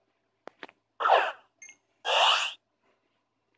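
A ball bursts open in a flash with a bright chime.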